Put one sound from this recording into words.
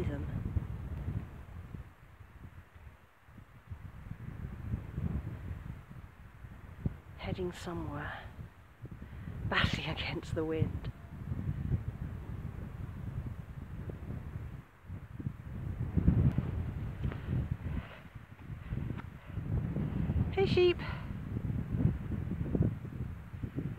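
Wind blusters into the microphone outdoors.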